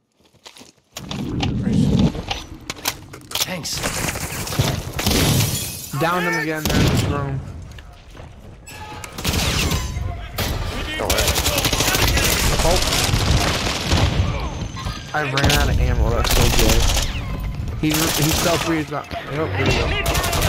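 Rapid gunfire bursts loudly and echoes.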